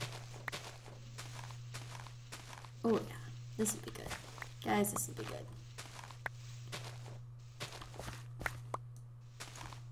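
A shovel digs into dirt with repeated soft crunches.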